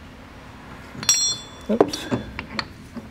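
A metal tool clicks and clanks against a car part.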